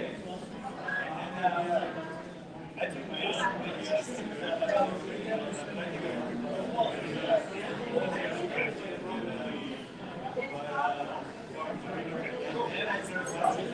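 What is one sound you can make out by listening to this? Several men and women chat and talk over one another.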